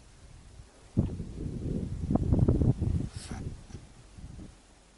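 Wind rumbles against the microphone.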